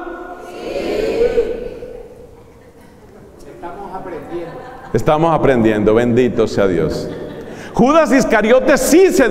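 A man speaks with animation through a microphone in a room with some echo.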